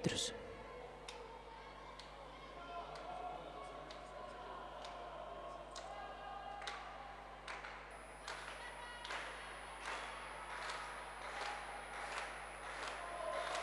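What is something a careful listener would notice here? Runners' footsteps patter on a track in a large echoing hall, growing louder as they come closer.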